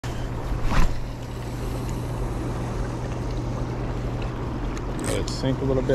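Water ripples and laps gently outdoors.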